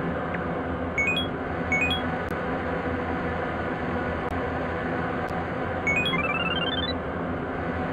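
Short electronic menu blips sound a few times.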